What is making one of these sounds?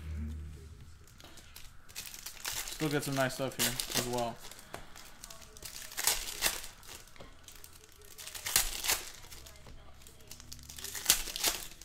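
Foil card packs crinkle and tear as hands rip them open.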